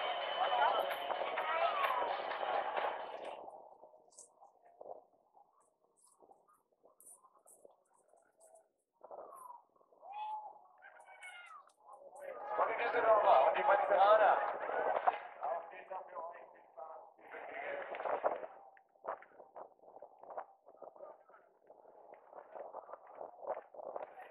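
Inline skates roll and scrape on asphalt nearby.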